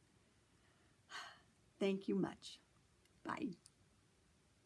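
A middle-aged woman laughs softly.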